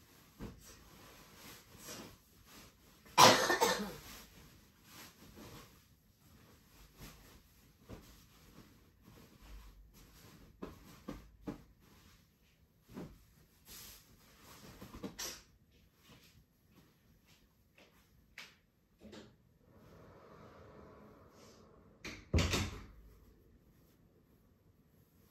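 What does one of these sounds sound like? Fabric rustles and pillows thump softly as they are handled.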